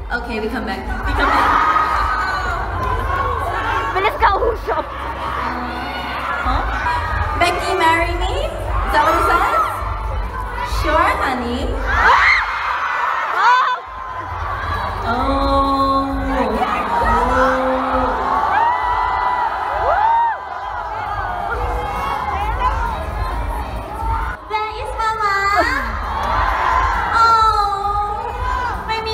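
A crowd cheers and screams in a large echoing hall.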